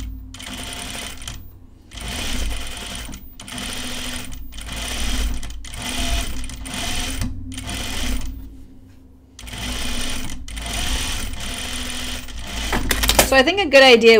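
A sewing machine whirs in short bursts.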